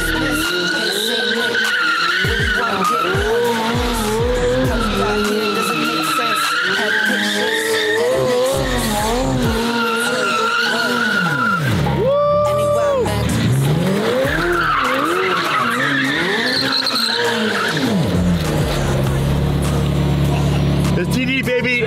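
A sports car engine revs hard, rising and falling quickly.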